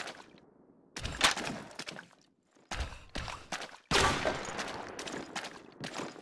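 Footsteps crunch over dirt and rubble.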